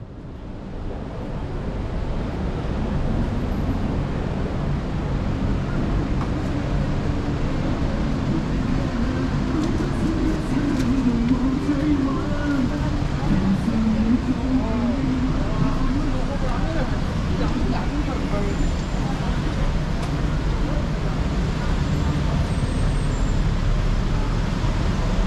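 Traffic rumbles steadily along a busy street outdoors.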